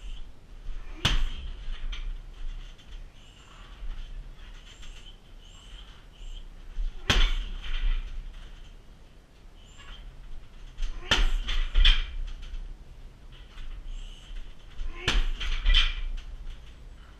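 Bare feet shuffle and thud on a foam mat.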